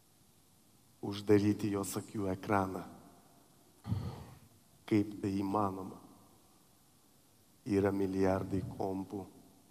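A man speaks emotionally through a headset microphone.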